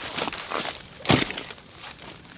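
A backpack thumps down onto dry leaves.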